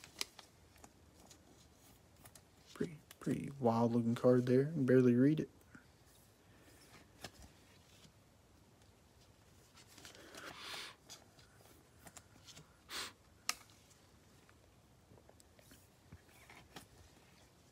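A plastic card sleeve crinkles and rustles as a card slides in.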